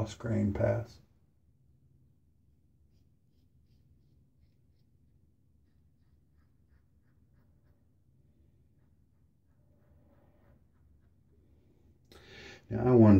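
A razor scrapes softly across stubble.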